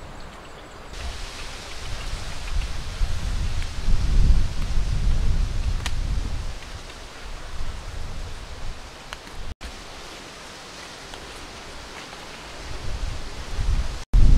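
Leaves rustle as hands pick at a plant.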